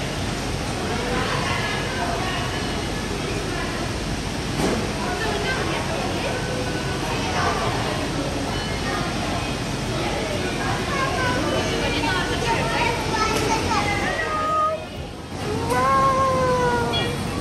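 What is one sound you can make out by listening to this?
Children shout and chatter in an echoing indoor space.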